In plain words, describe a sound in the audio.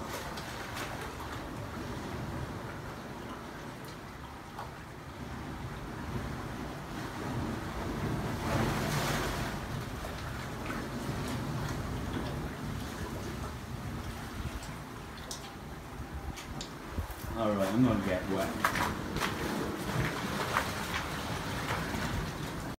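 Water sloshes and laps gently against rocks.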